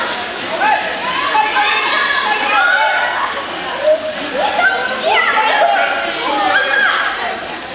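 Water splashes as water polo players swim and tussle.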